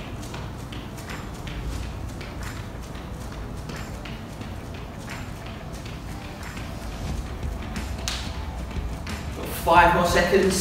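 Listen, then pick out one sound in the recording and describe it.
Sneakers thud softly on an exercise mat in a steady rhythm.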